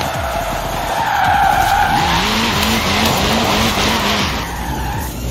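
Tyres screech as a rally car drifts.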